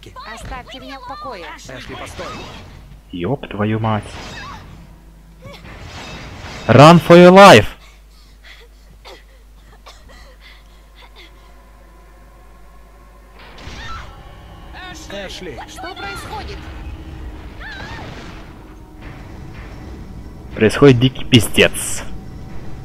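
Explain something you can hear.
A young woman shouts and screams in distress.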